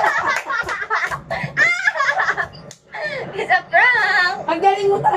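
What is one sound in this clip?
A young woman laughs loudly and shrieks close by.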